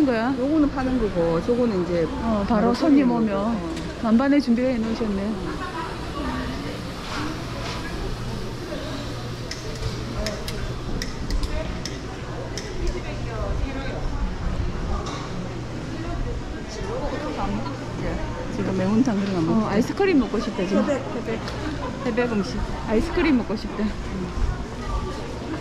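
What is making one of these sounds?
Men and women chatter nearby under a hum of background voices.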